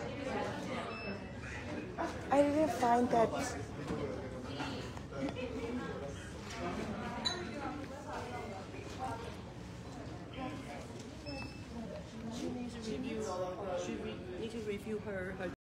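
A young woman talks close to a phone microphone.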